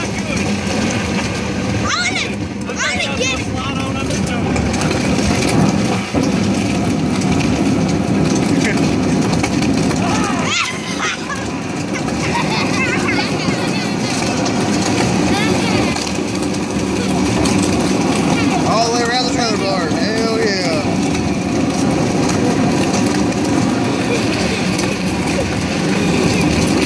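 A plastic toy tub scrapes and rumbles along rough pavement.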